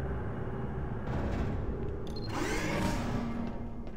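Metal elevator doors slide open.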